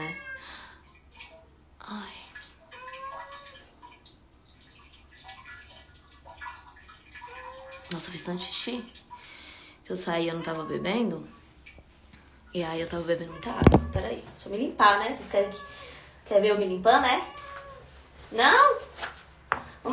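A young woman speaks close by, softly at first and then more loudly with animation.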